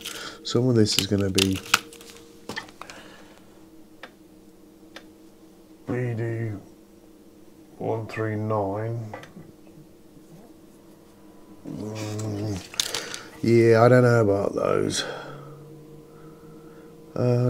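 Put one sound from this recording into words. Small electronic parts click and rustle softly as they are handled.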